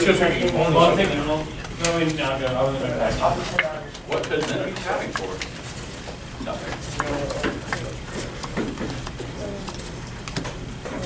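Playing cards slide and tap against each other as they are handled.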